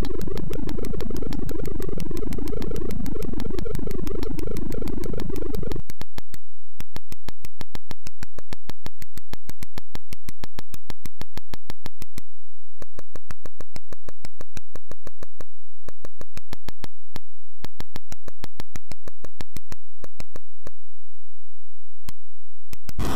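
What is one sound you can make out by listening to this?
Short electronic game clicks tick in a quick, steady beat.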